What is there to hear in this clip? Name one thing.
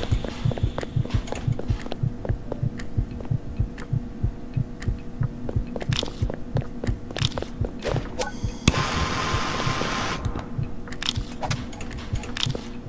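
Heavy footsteps thud steadily on a hard floor.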